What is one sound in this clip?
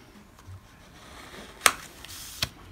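A plastic card scrapes across a metal plate.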